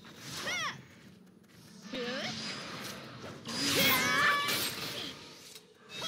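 Magic spells whoosh and chime in a game's fight.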